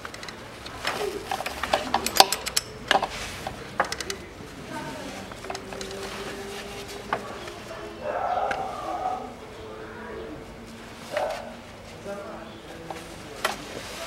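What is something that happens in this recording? Metal tools clink and tap against engine parts.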